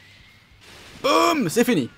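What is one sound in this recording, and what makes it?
A video game energy blast roars.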